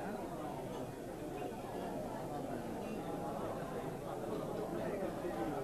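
Knives and forks scrape and clink on plates.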